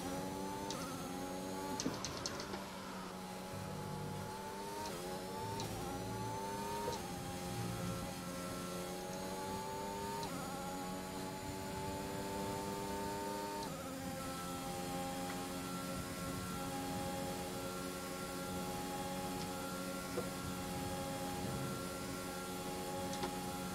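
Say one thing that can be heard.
A racing car engine whines loudly, climbing in pitch and dropping at each gear change.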